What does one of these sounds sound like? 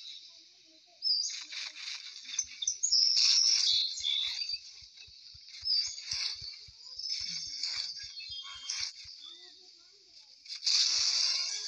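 A large creature roars and screeches in bursts.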